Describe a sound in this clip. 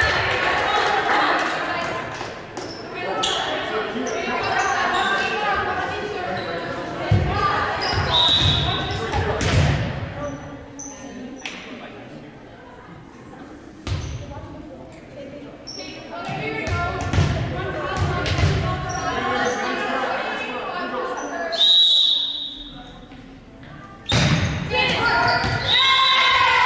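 Young women call out and shout across a large echoing hall.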